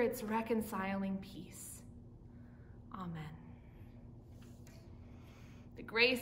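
A young woman speaks calmly and warmly, close to a microphone.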